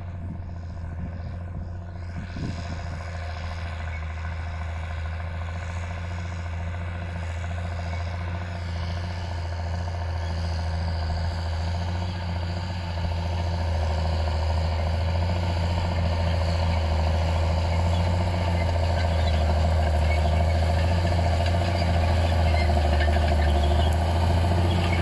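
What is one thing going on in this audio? A tractor engine rumbles steadily and grows louder as it approaches.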